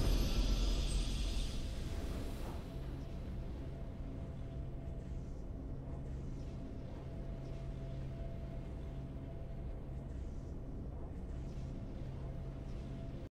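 Triumphant music plays steadily.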